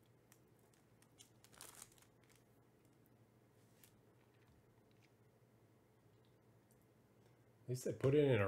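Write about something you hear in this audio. A plastic card sleeve crinkles softly in the hands.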